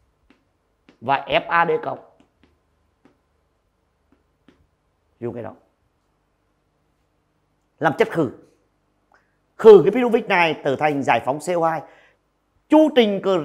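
A man speaks calmly and clearly through a close microphone, in short phrases with pauses.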